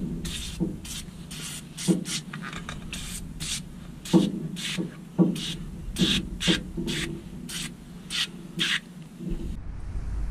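An aerosol can sprays in short, repeated hissing bursts.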